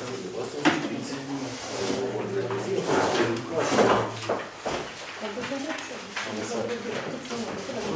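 Paper sheets rustle and crinkle as they are handled.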